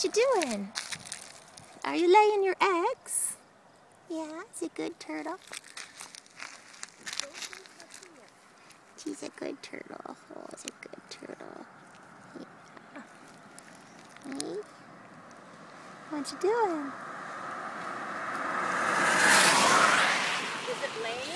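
A turtle's claws scrape and crunch on gravel.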